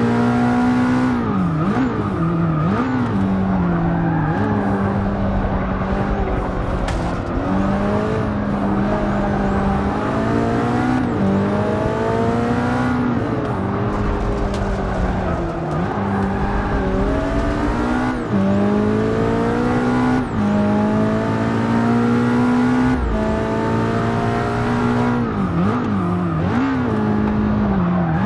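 A racing car engine roars loudly, revving up through the gears and dropping in pitch as it brakes and shifts down.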